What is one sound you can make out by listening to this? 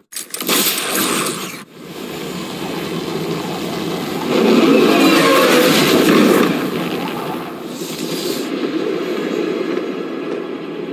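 Wind roars steadily.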